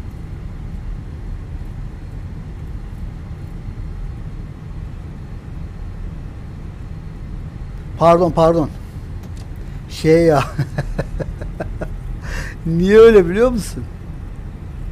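A jet engine hums low and steady.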